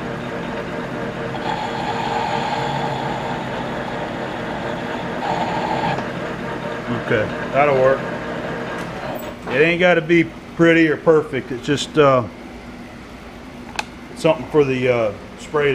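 A metal lathe whirs steadily as its spindle spins.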